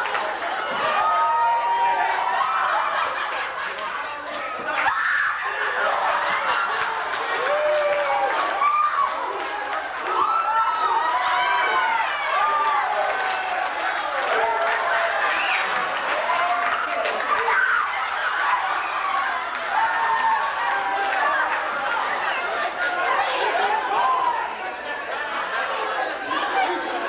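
A young man speaks loudly with animation in an echoing room.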